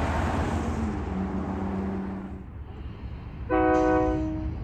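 A train horn blares loudly.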